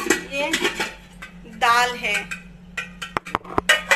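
A metal spoon scrapes inside a steel pot.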